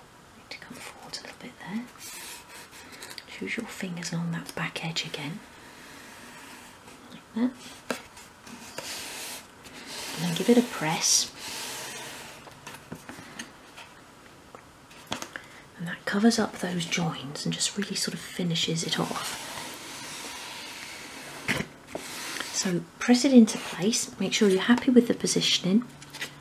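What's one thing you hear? A small wooden cabinet taps and knocks lightly as hands handle it.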